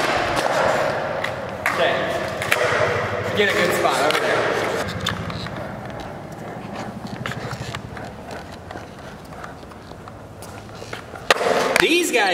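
Skateboard wheels roll and rumble over smooth concrete.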